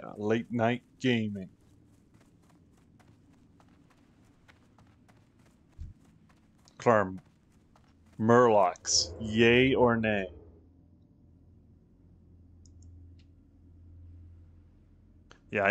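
Footsteps run across soft grass.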